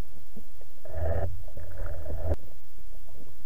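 Bubbles gurgle and rush underwater.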